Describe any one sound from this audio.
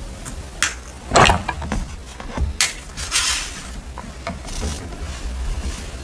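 Paper rustles and crinkles as pages are handled.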